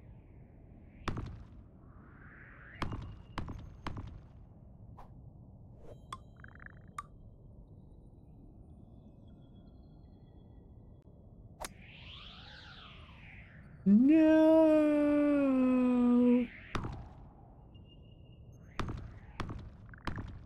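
Short clicks and taps sound now and then.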